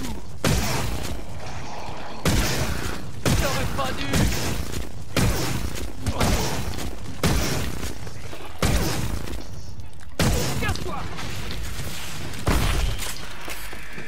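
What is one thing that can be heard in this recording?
A gun fires in repeated loud bursts.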